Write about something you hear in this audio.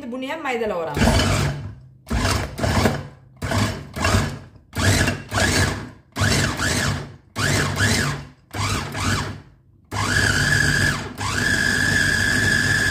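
An electric food chopper whirs in short bursts, then runs steadily.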